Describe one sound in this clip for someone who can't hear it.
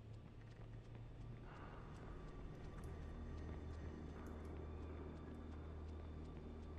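Footsteps hurry over hard ground.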